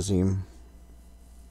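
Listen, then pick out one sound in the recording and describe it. A man makes a short, loud vocal sound close to a microphone.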